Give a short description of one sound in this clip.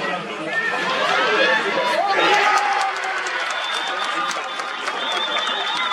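A crowd of spectators shouts and cheers across an open field.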